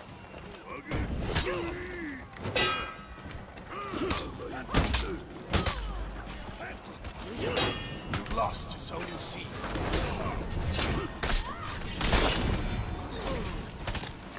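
A crowd of fighters shouts and yells in battle.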